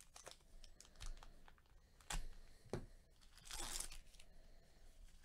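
A foil wrapper crinkles and rustles in gloved hands.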